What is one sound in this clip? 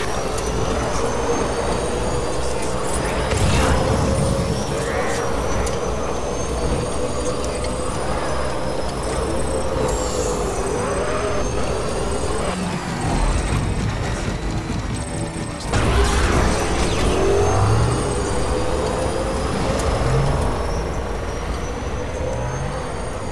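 A game vehicle's motor hums as it drives along a road.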